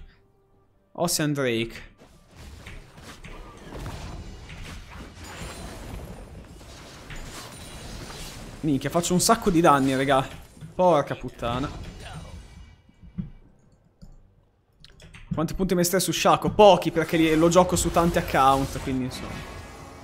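A young man talks into a close microphone with animation, in bursts.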